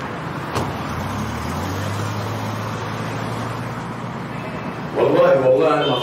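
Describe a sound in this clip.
A car engine hums as the car pulls away.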